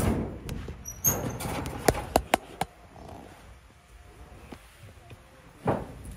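Cloth rustles and flaps close by.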